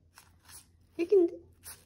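A small dog gives a short, high yelp.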